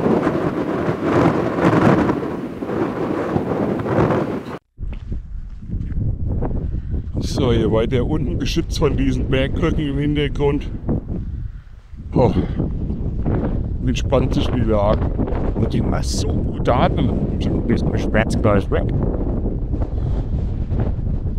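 Wind blows hard across open ground.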